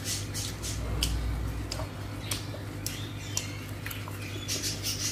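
A young woman chews food close to a microphone with wet smacking sounds.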